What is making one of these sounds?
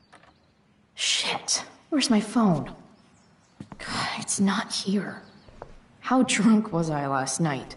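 A young woman speaks to herself close by, sounding frustrated and groggy.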